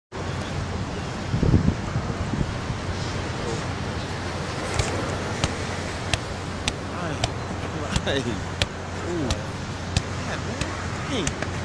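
A football thuds as a foot kicks and taps it on sand.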